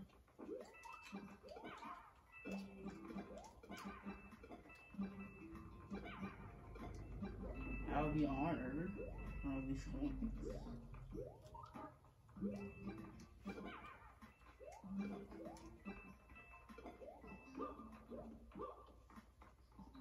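Cheerful game music plays steadily.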